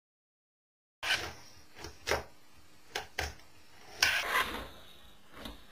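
A small fingerboard clacks and scrapes on a cardboard box.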